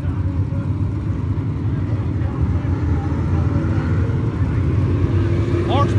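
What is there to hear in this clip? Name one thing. Race car engines roar loudly as the cars pass close by.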